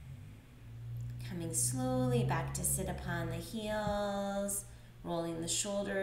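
A woman speaks calmly and softly nearby.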